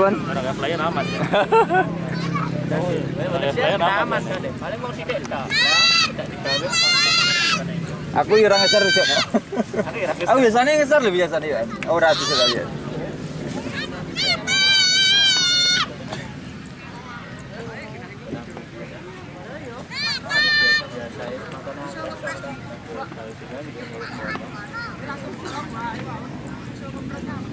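A crowd of men chatter and shout outdoors.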